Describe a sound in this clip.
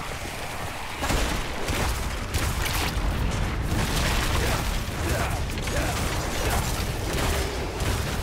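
Fiery explosions burst and roar repeatedly.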